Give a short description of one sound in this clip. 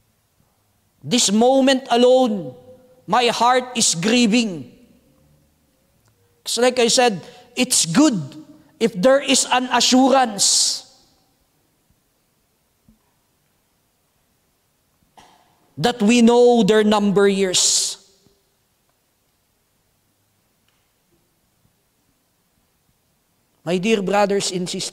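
A man preaches with feeling into a microphone, in bursts with long pauses.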